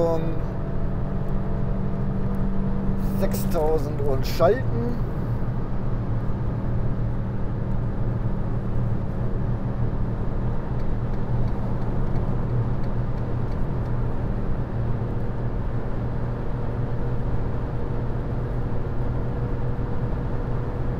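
Tyres roll loudly over the road.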